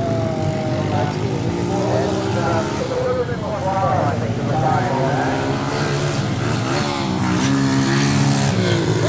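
Small dirt bike engines whine and rev up and down nearby.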